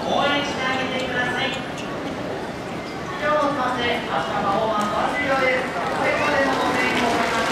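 A woman speaks with animation through a loudspeaker, outdoors.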